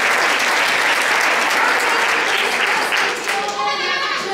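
An audience claps in a large echoing hall.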